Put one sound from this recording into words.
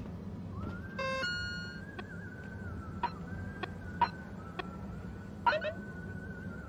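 An electronic device beeps and clicks as menu items are chosen.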